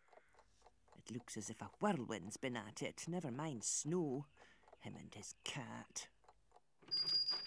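An elderly woman talks calmly, close by.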